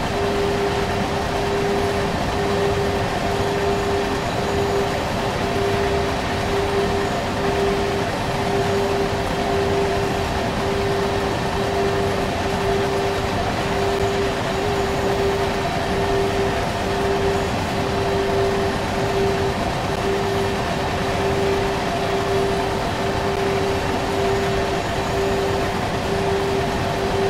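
A freight train rumbles steadily along the rails.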